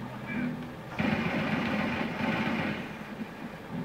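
Gunfire bursts from a television's speakers.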